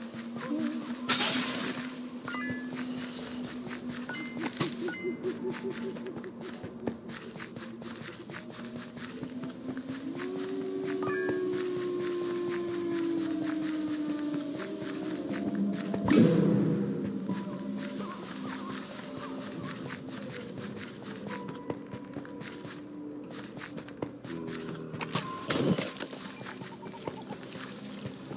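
Sword swings and hits sound in quick bursts.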